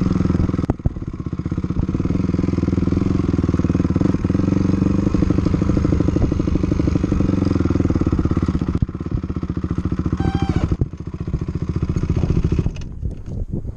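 A motorcycle engine revs and rumbles loudly close by.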